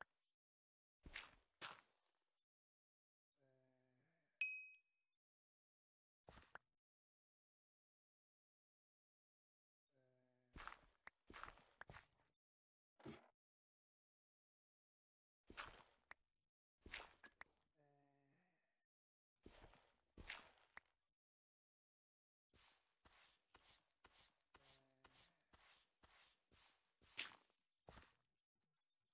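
Stone and earth blocks crunch in short bursts as they are dug out and set down.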